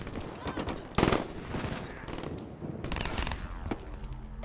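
Rapid gunshots crack loudly.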